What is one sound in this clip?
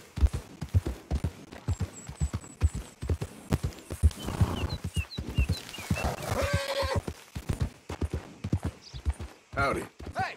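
Horse hooves thud at a steady gallop on soft ground.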